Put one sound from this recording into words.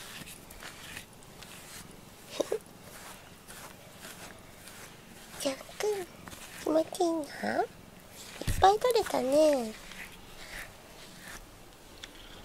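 A rubber brush rubs and swishes through a cat's fur.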